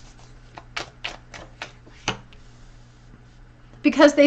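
A card is laid down softly on a cloth surface.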